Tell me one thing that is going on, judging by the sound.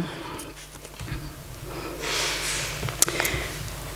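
Paper rustles as pages are turned.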